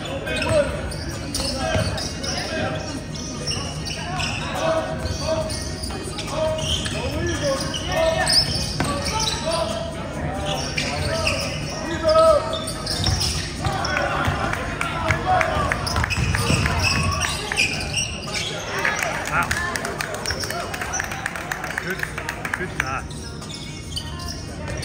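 Young players shout and call out on the court.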